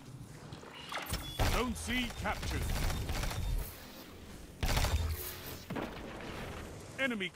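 A game gun fires in rapid bursts.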